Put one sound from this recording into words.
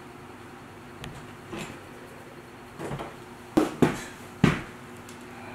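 Blobs of paint splat against a hard surface several times.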